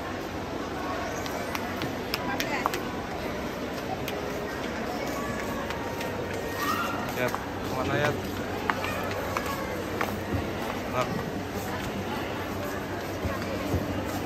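Footsteps tap on a tiled floor.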